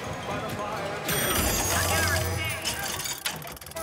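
A vending machine gives off a bright, shimmering whoosh.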